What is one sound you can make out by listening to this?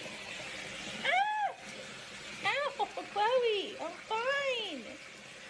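A cat meows repeatedly in high, short cries.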